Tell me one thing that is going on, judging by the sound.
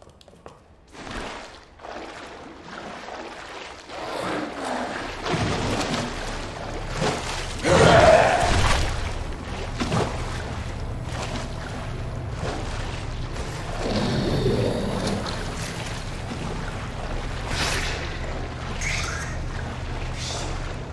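Water splashes and sloshes as someone wades through it.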